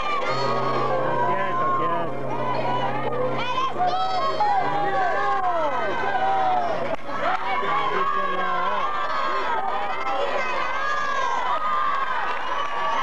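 A woman sings loudly through loudspeakers.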